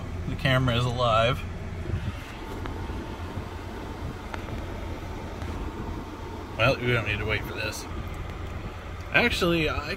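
A car engine idles with a low, steady hum.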